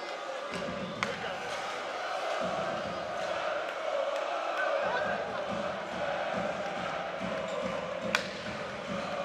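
A hockey stick smacks a puck.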